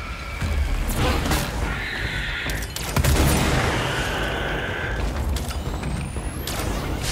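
A gun fires in short bursts.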